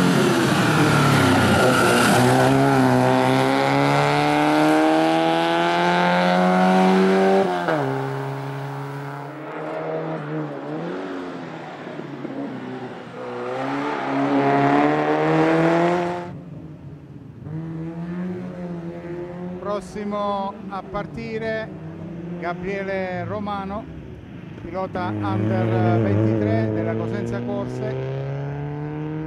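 A small rally car engine revs hard and roars past, shifting gears.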